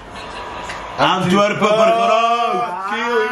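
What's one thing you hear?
A young man laughs and talks loudly with animation, close by.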